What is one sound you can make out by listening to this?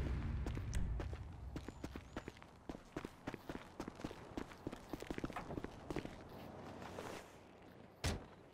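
Footsteps crunch over snow.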